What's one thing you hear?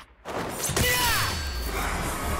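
A young man shouts a battle cry.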